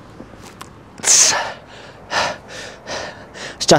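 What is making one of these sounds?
A young man breathes out heavily with effort.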